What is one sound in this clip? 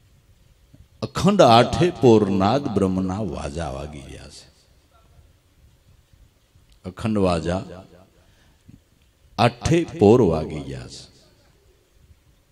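A middle-aged man sings expressively through a microphone in bursts.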